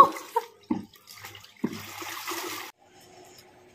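Water splashes as a woman washes clothes in a tub.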